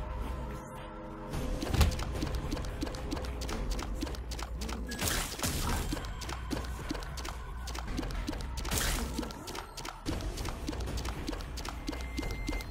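Steady video game music plays throughout.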